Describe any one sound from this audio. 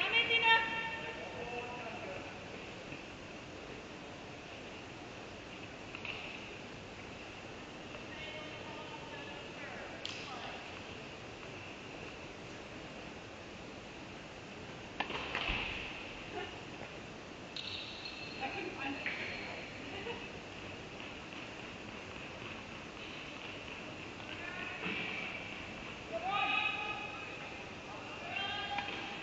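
A young woman calls out at a distance.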